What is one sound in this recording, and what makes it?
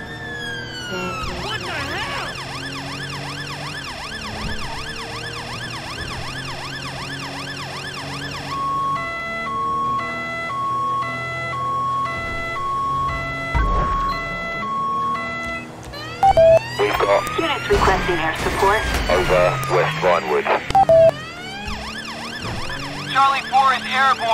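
A police siren wails, switching between wailing, two-tone and fast yelping patterns.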